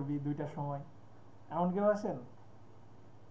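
A young man speaks briefly and calmly over an online call.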